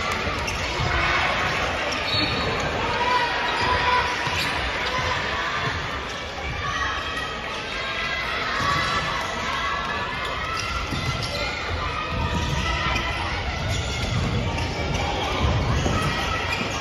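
A crowd of spectators murmurs and chatters in a large echoing gym.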